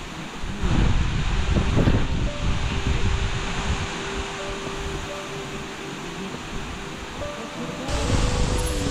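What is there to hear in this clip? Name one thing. A waterfall rushes and splashes steadily.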